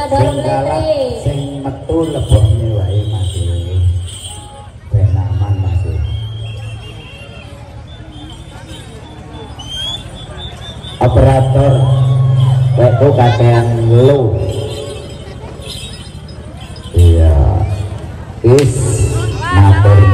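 A woman sings loudly through a loudspeaker.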